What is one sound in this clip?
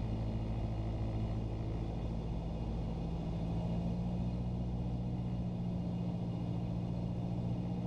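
A small propeller plane's engine drones loudly and steadily, rising slightly in pitch.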